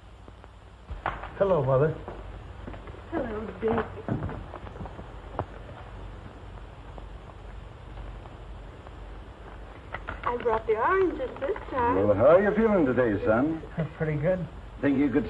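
A woman speaks warmly and with emotion.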